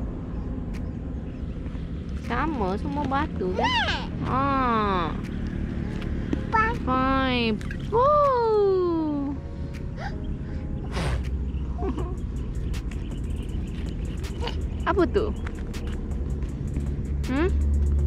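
Pebbles crunch under small feet.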